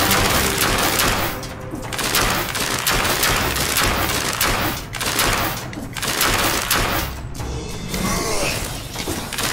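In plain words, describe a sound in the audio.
A sword slashes and strikes enemies in quick, sharp hits.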